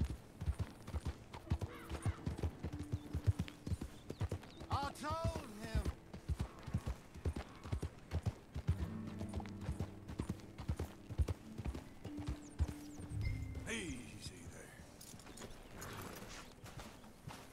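Horse hooves clop steadily on a dirt trail.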